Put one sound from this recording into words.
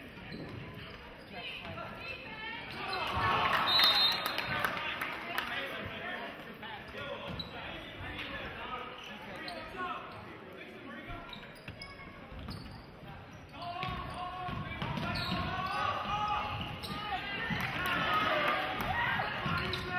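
A crowd murmurs and cheers in a large echoing gym.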